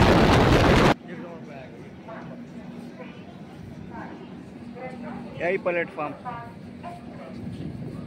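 People chatter nearby.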